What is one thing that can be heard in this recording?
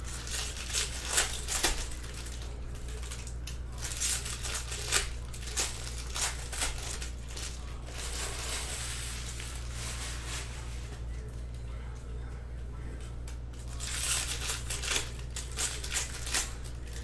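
A foil wrapper crinkles and rustles as hands tear it open.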